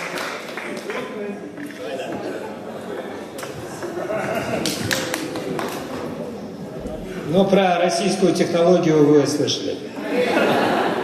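A man sings loudly through a microphone in a large hall.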